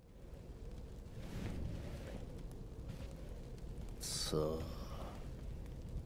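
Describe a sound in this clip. An elderly man speaks slowly in a low, gravelly voice.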